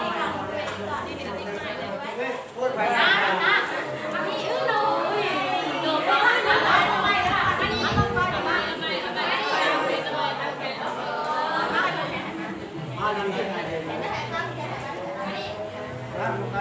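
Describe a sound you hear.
A crowd of men and women chatter all at once nearby.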